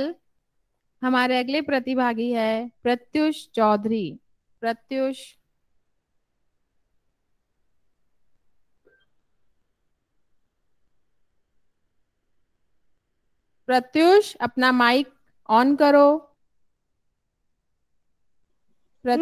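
A woman speaks calmly into a microphone, with pauses.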